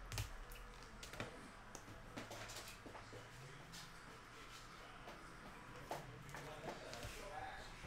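Small objects click and knock as a man handles them.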